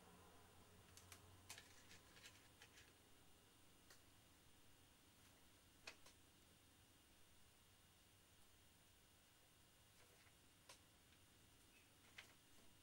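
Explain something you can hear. Small taps and clicks sound as a pen is handled.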